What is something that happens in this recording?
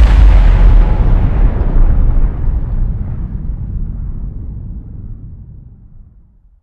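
A huge explosion booms and rumbles, slowly fading away.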